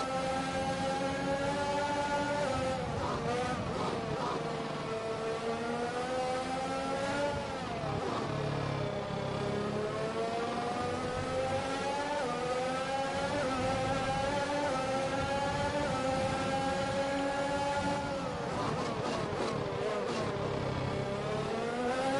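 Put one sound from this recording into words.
A racing car engine screams at high revs, dropping in pitch on downshifts and rising again as it accelerates.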